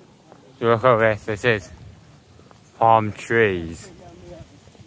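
A man speaks close by in short, lively bursts.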